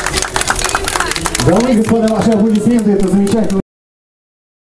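A crowd claps outdoors.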